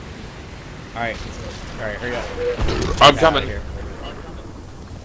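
A young man talks animatedly into a close microphone.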